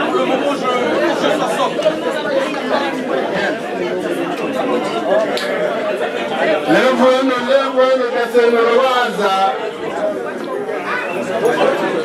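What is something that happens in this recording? A large crowd of men and women talks and murmurs all around.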